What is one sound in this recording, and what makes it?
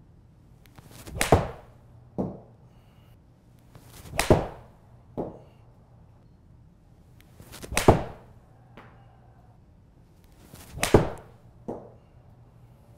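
A golf club swishes and strikes a ball sharply, several times.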